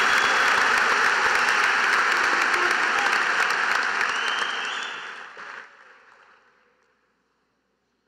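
A large crowd applauds in a big echoing hall, then the applause fades away.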